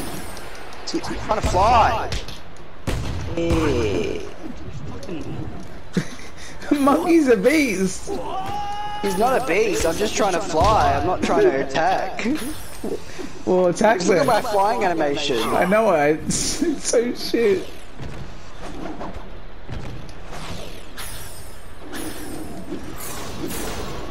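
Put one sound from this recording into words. Punches and kicks thud and whoosh in a fast fight.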